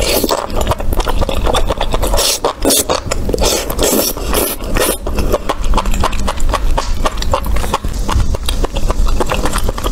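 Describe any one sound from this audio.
A person chews wet food with squelching, smacking sounds close to a microphone.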